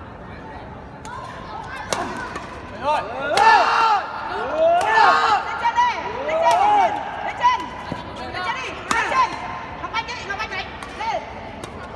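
Rackets strike a shuttlecock in sharp, quick smacks that echo around a large hall.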